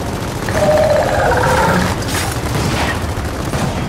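Rapid gunfire rattles in bursts nearby.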